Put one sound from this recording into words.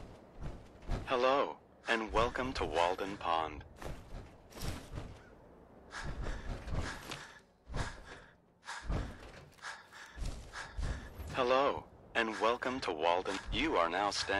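A man's recorded voice speaks cheerfully through a small loudspeaker.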